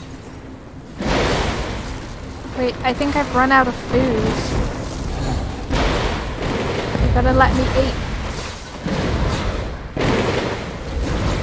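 Lightning crackles and booms in loud bursts.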